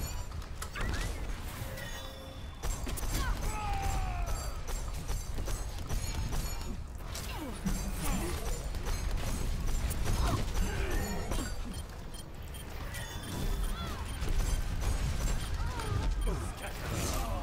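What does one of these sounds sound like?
Game weapons fire and explosions burst.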